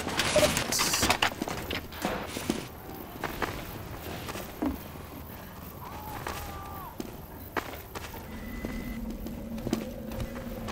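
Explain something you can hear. Footsteps thud quickly on hard ground and wooden boards.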